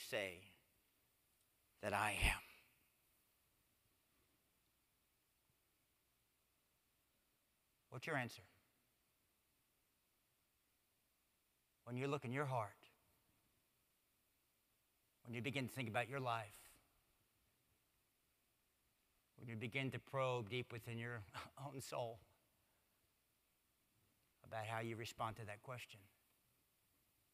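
A man speaks slowly and deliberately through a microphone, with long pauses, in a large echoing room.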